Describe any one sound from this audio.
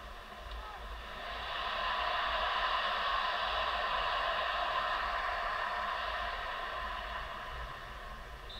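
A football video game's crowd cheers and swells through a phone speaker.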